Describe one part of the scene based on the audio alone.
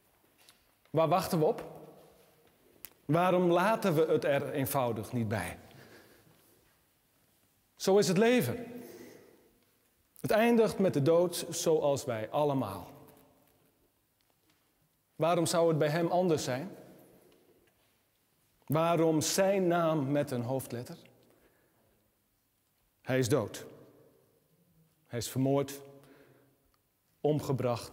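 A middle-aged man speaks calmly in short phrases, echoing slightly in a room.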